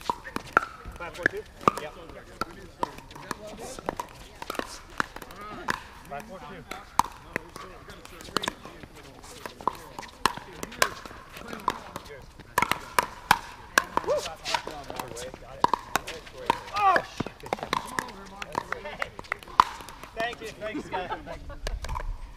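Paddles hit a plastic ball with sharp pops, over and over.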